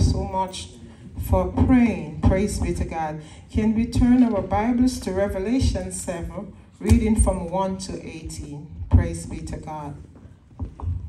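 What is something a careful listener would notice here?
A woman sings with feeling through a loudspeaker in a large room.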